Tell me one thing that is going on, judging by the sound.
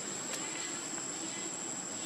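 A small monkey scratches at loose gravel with its hand.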